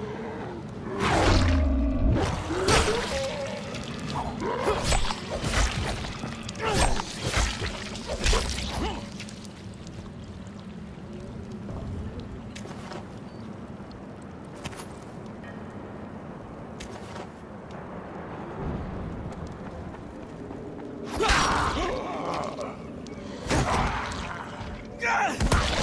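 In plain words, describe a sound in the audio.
A blade slashes and thuds into flesh again and again.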